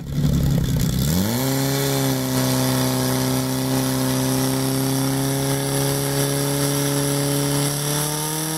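A portable fire pump engine revs up and runs at high speed.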